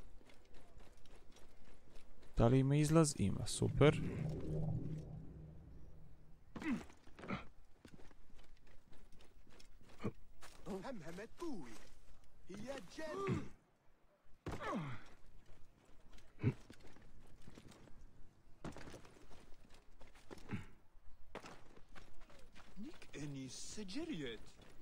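Quick footsteps run over stone.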